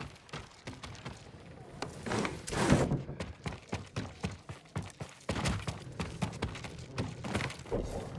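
Footsteps tread on wooden floorboards.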